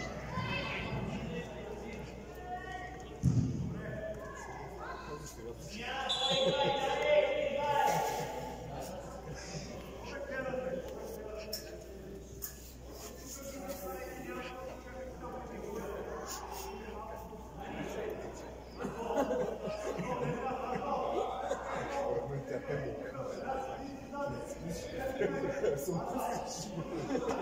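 Children shout and call out during a football game, echoing in a large hall.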